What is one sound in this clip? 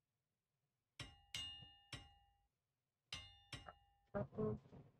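Short chiming clicks ring out as game menus open.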